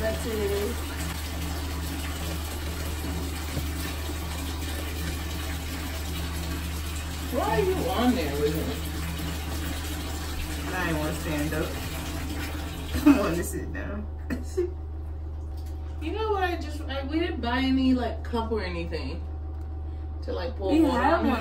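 A young woman talks softly and close by.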